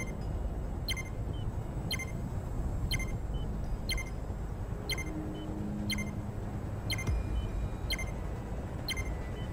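A short electronic beep sounds once every second as a countdown.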